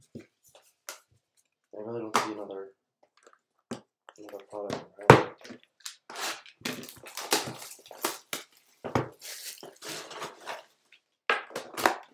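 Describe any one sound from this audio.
A cardboard box knocks onto a table.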